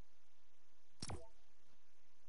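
A short electronic click sounds from a game menu.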